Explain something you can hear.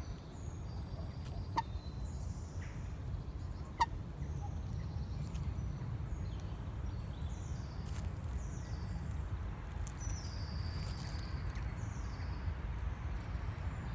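A small animal rustles twigs and leaves.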